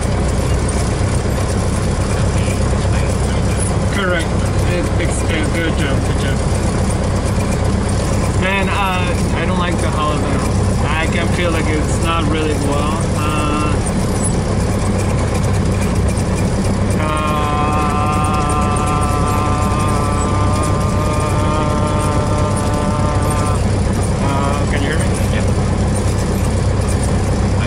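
A small propeller plane's engine drones steadily and loudly.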